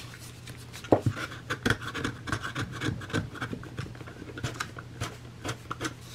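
A craft knife scrapes along the edge of paper with quick scratching strokes.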